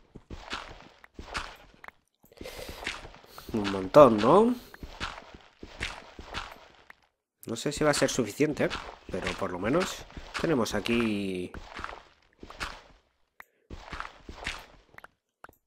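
A pickaxe digs into stone and gravel with repeated crunching thuds.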